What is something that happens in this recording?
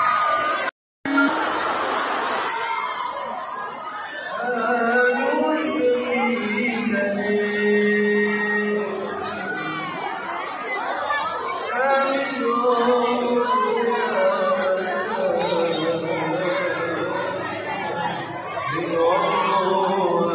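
A man sings into a microphone through loud speakers in a large echoing hall.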